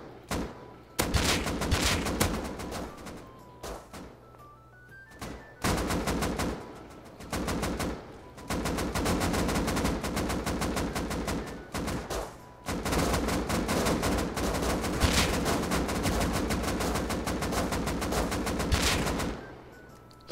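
A rifle fires in rapid bursts of loud gunshots.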